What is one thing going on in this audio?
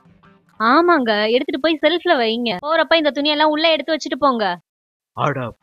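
A woman speaks with animation close by.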